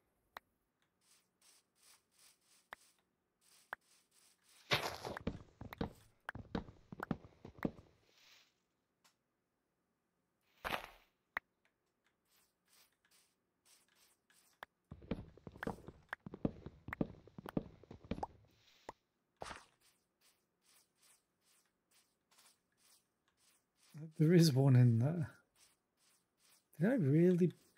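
Footsteps patter softly on grass in a game.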